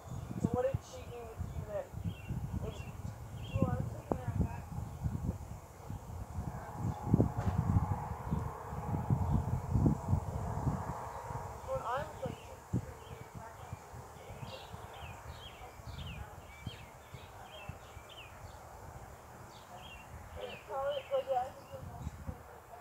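Women talk casually at a distance outdoors.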